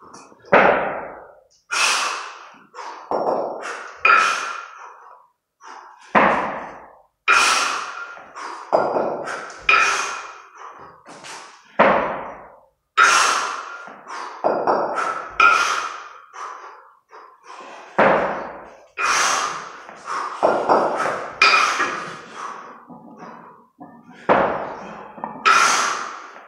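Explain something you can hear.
Iron kettlebells clang together and ring out with each lift.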